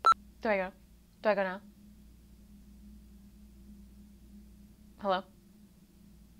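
A young woman makes a few short, rising vocal sounds close by.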